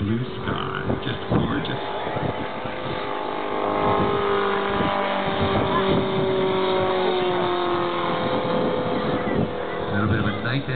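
A propeller plane drones overhead, its engine pitch slowly falling.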